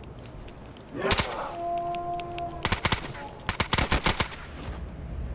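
Rapid gunshots ring out in loud bursts.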